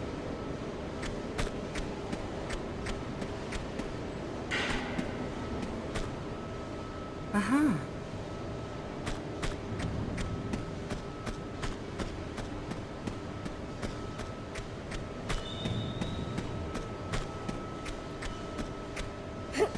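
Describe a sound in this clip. Footsteps clatter quickly on a metal floor.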